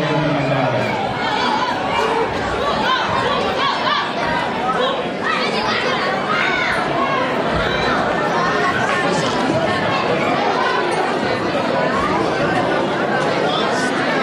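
A crowd of children and adults chatters noisily.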